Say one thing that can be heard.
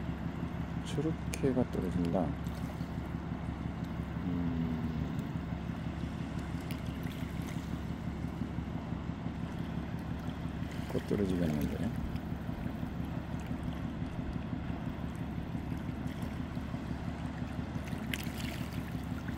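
Shallow water washes gently over sand.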